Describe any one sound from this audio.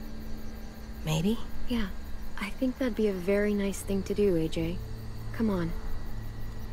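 A teenage girl speaks warmly and calmly.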